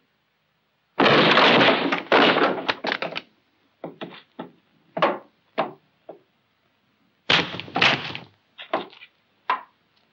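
Wooden planks clatter and knock.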